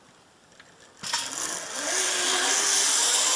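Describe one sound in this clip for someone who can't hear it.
A pulley whirs along a zip line cable.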